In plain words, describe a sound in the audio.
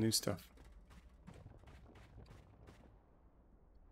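Footsteps tread quickly on hard ground.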